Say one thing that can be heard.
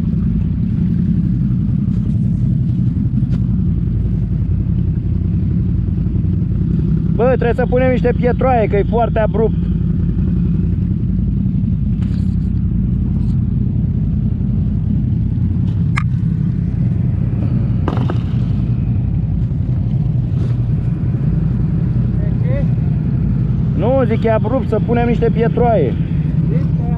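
A quad bike engine idles with a steady low rumble.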